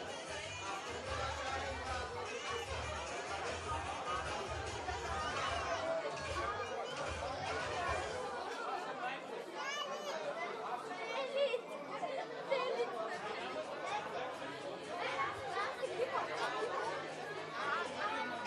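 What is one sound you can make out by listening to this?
A crowd of adults and children chatter nearby.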